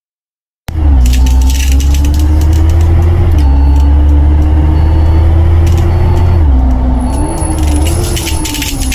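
A bus engine hums steadily as the bus drives along, its pitch shifting with speed.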